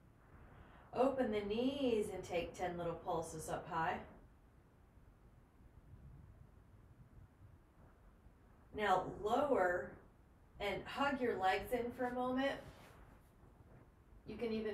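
A woman speaks calmly and slowly, close to a microphone.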